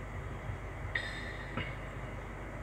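A small metal cup clinks lightly.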